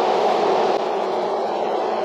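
A broom sweeps across a wooden floor.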